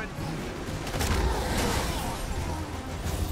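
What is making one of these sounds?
Heavy metal and concrete crash and smash.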